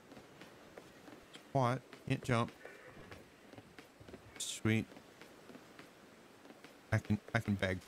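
Footsteps patter quickly over wooden planks.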